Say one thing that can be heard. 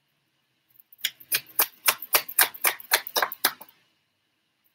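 Cards shuffle and flick with quick crisp taps.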